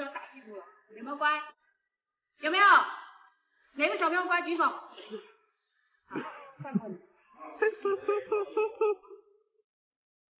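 A little girl speaks and laughs nearby.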